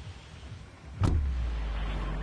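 A deep thud booms once.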